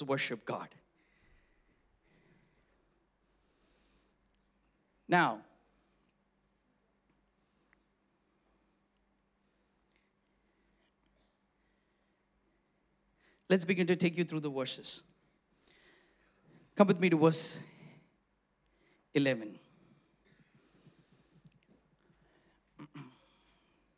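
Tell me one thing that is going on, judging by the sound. A man speaks with animation into a microphone, in short bursts with long pauses.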